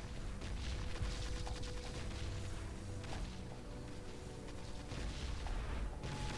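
Distant explosions boom with a low rumble.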